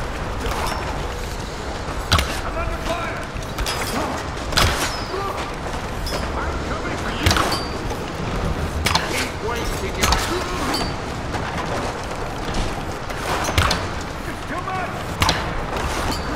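A bow twangs as arrows are loosed, again and again.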